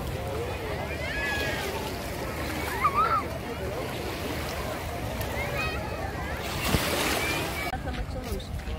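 A crowd of bathers chatters, with children shouting.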